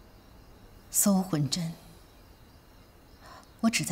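A young woman speaks softly, close by.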